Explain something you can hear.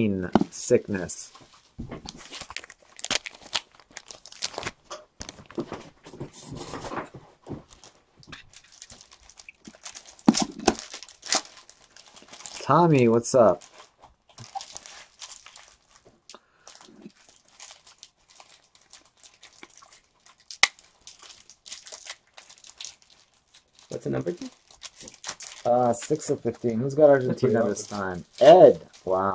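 Plastic card cases click and rattle as they are handled.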